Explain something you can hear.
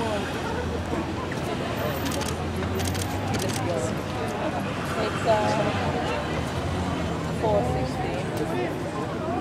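Several adults chatter and call out nearby outdoors.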